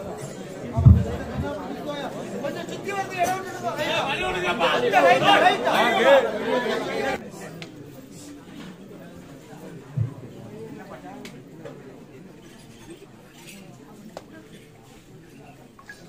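A large crowd chatters loudly outdoors.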